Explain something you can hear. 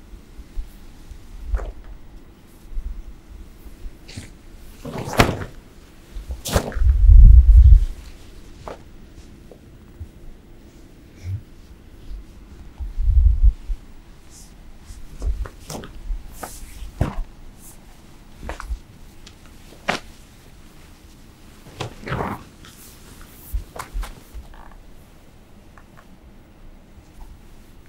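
Fabric swishes and flaps through the air.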